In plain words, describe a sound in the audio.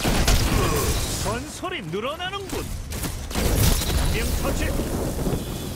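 An energy blast crackles and whooshes.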